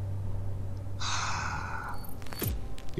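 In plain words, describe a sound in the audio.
A game menu plays a short whooshing effect as an emblem pops up.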